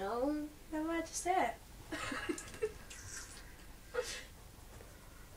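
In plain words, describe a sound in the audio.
A young man speaks in a high, squeaky puppet voice close by, with animation.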